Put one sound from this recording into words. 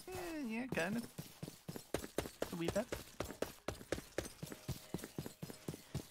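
Footsteps thud quickly and steadily on grass.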